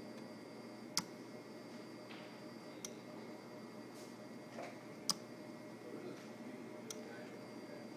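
A machine clicks sharply now and then.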